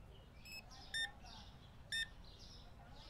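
A checkout scanner beeps as an item is scanned.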